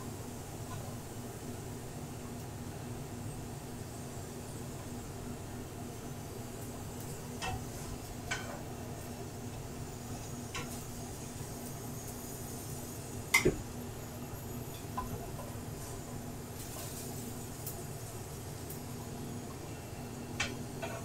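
Potatoes sizzle softly in a hot pan.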